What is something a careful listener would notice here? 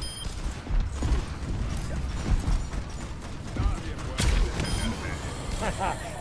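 A video game weapon fires explosive rounds that boom on impact.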